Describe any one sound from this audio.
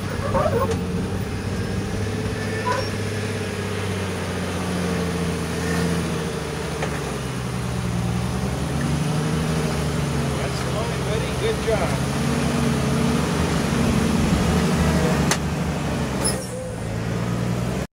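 An engine rumbles and revs as an off-road vehicle crawls over rock.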